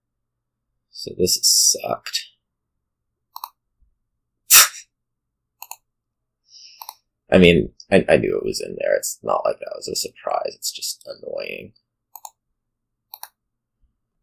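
Short card game sound effects click and swish.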